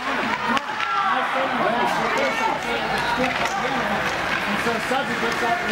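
Skates scrape and swish across the ice.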